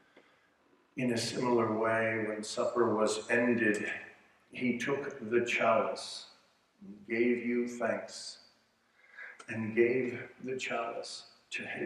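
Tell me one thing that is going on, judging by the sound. A middle-aged man speaks calmly and clearly through a microphone.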